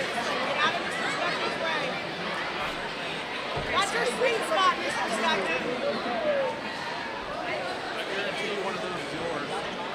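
A large crowd chatters and shouts, echoing in a big hall.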